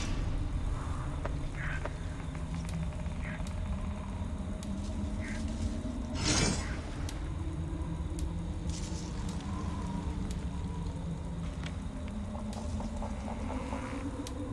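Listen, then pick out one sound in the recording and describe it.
Soft menu clicks and chimes sound as items are selected.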